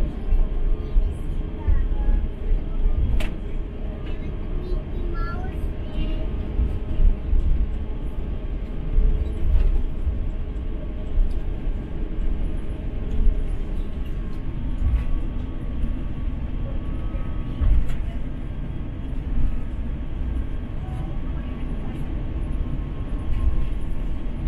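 A vehicle's engine rumbles low and steadily from inside while it rolls along.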